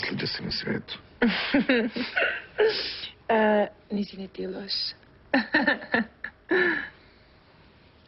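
A young woman speaks softly and close by.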